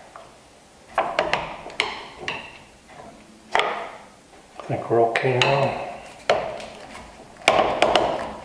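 Wooden pieces knock against each other in a vise.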